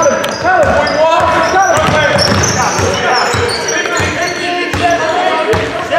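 A basketball bounces on the floor with dull thuds.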